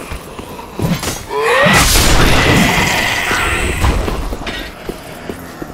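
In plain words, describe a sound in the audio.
A sudden loud rumbling blast roars and fades.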